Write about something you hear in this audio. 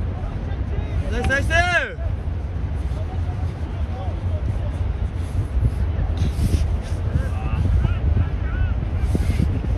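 Men shout to each other in the distance outdoors.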